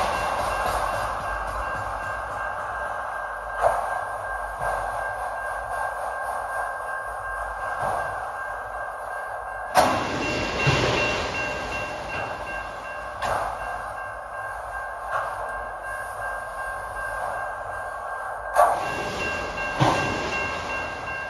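A long freight train rolls past with a steady rumble and rattle.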